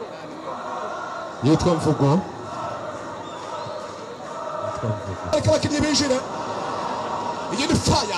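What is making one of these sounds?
A crowd of spectators chatters and shouts in the distance outdoors.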